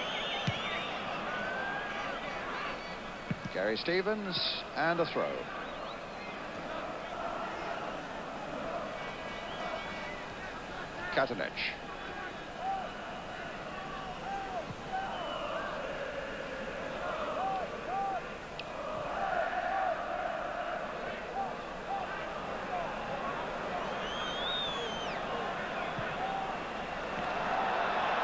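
A large crowd murmurs and roars in an open stadium.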